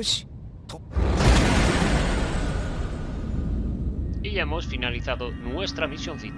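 A loud whoosh swells and slowly fades.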